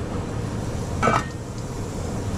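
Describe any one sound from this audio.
A metal ladle clinks against a pot lid.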